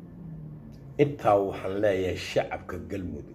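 A middle-aged man speaks close to the microphone with animation.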